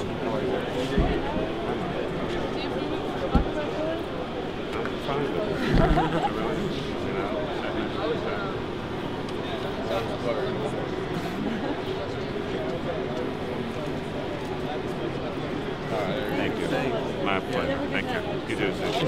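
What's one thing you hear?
A crowd of young people chatters close by.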